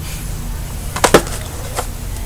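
A plastic case knocks against a hand.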